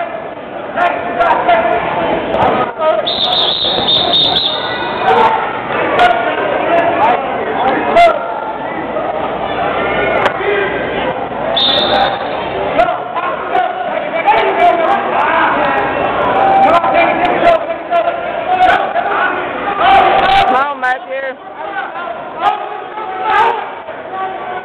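A crowd chatters and calls out throughout a large echoing gym.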